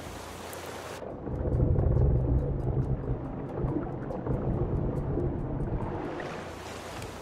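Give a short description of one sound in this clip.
Water rushes and gurgles, heard muffled from underwater.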